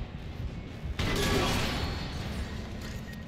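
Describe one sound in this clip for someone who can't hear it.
A metal vent bursts apart with a loud crash and scattering debris.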